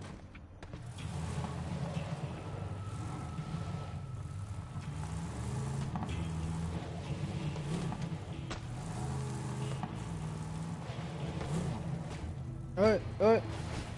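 A buggy engine rumbles and revs as it drives over rough ground.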